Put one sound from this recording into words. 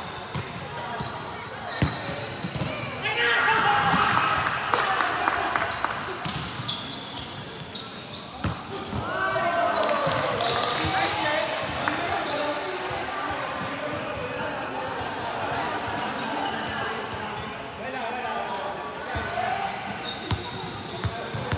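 A volleyball is struck with sharp slaps, echoing in a large hall.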